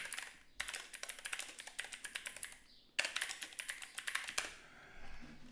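Keys clatter rapidly on a keyboard.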